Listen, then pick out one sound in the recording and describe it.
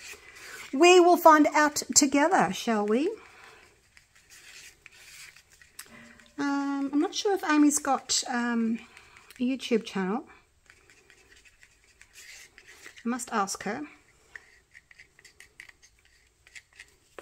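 A wooden stick scrapes and taps inside a small cup as a thick liquid is stirred.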